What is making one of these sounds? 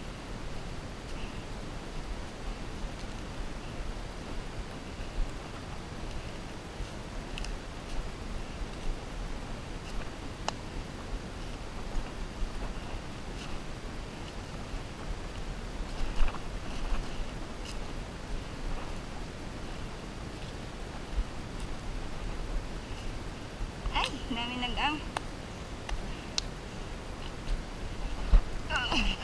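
Footsteps crunch through dry leaves on a forest floor.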